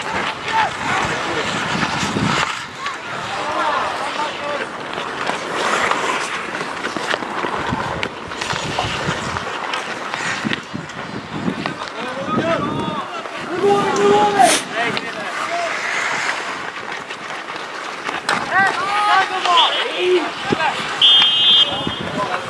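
Players shout to one another across an open rink.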